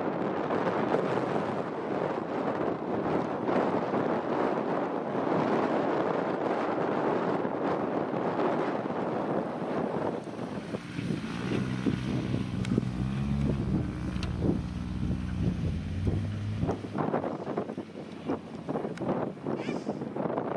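Strong wind blusters across an open hillside.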